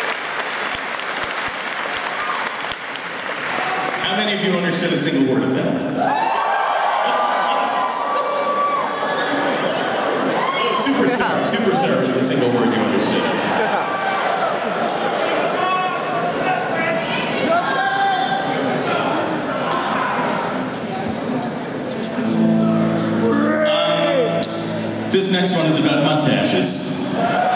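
A rock band plays loudly in a large hall.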